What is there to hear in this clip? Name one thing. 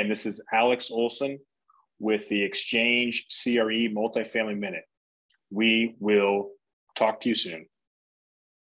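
A middle-aged man talks calmly and closely into a microphone.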